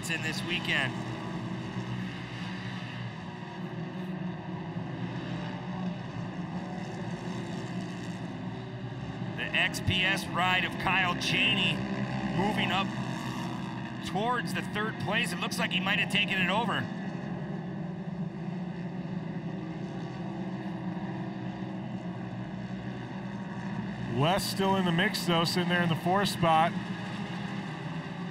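Several off-road buggy engines roar steadily as they race over dirt.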